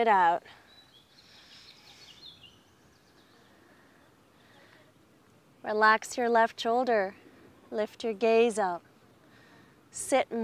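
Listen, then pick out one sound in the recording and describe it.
A woman speaks calmly and slowly, close to the microphone.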